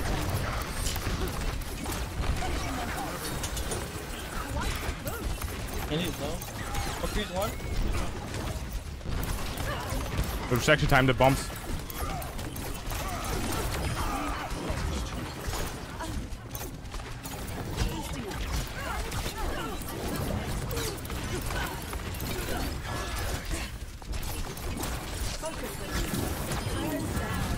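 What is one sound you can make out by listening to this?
Energy beams hum and crackle in a video game.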